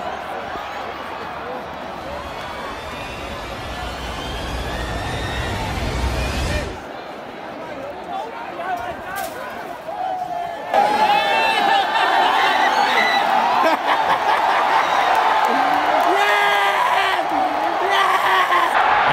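A large stadium crowd chatters and murmurs all around.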